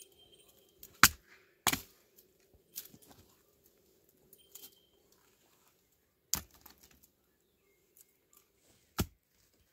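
A mattock strikes hard into stony ground with sharp thuds.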